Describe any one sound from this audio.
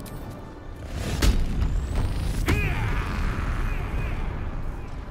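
A magic spell bursts with a deep rumbling whoosh.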